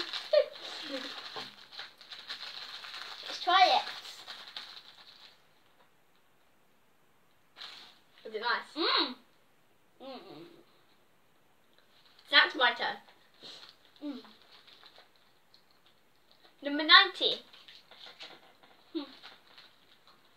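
Two young girls talk with animation close by.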